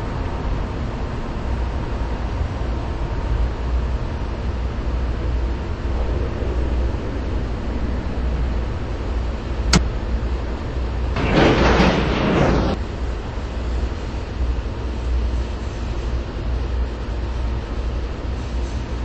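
A subway train rumbles steadily along the rails.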